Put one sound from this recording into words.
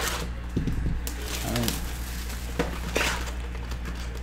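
Plastic wrapping crinkles as it is torn off a box.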